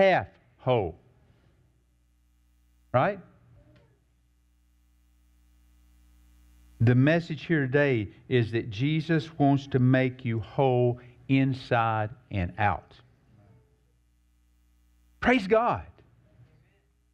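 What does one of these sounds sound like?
A man preaches calmly through a microphone in a large room, with pauses between phrases.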